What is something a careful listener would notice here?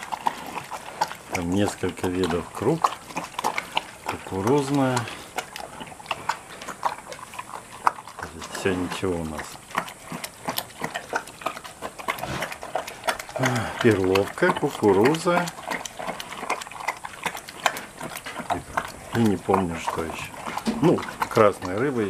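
A bear munches and crunches dry feed up close.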